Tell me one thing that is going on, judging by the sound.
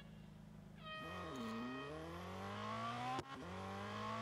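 A race car engine revs hard and climbs in pitch as it speeds up.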